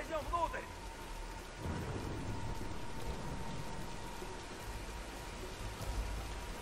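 Heavy rain pours steadily outdoors.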